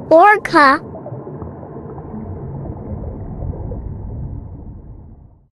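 Water rumbles low and steadily underwater.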